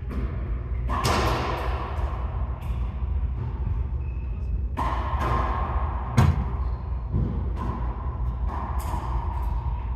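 A racquetball smacks off the walls of a large echoing court.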